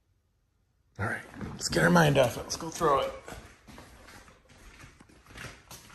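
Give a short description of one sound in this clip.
A dog's claws patter across a wooden floor.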